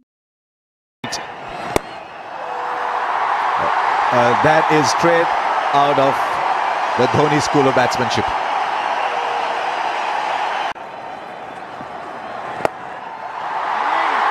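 A large crowd cheers and roars steadily in a stadium.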